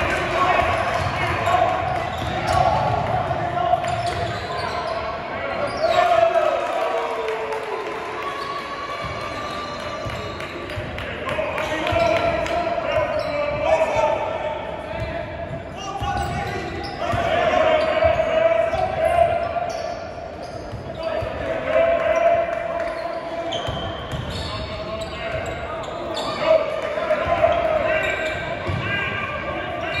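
A crowd of spectators murmurs and calls out in the echoing gym.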